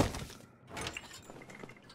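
A metal lantern creaks as it swings.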